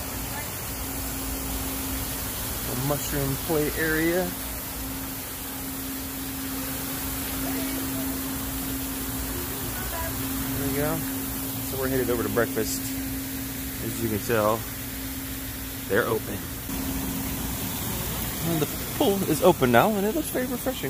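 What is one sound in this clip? Water from a fountain splashes steadily into a pool.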